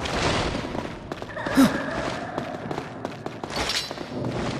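Blades slash and strike with sharp clanging hits.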